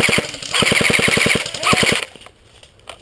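An airsoft rifle fires a rapid burst.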